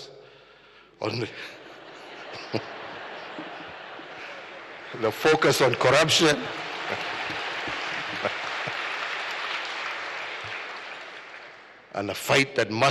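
A crowd laughs.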